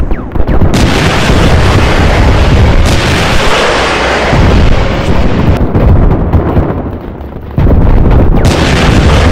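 Tank engines rumble loudly nearby.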